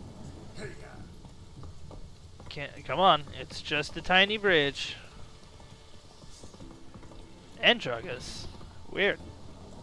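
A horse's hooves gallop steadily.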